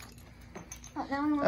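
A young girl speaks excitedly up close.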